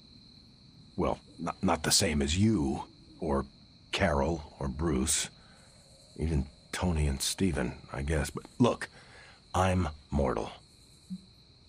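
A man speaks calmly and evenly, close up.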